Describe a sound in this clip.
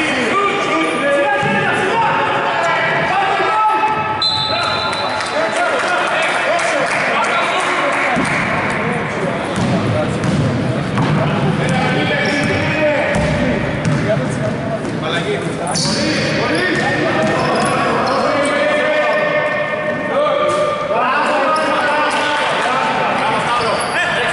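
A basketball bounces on the floor.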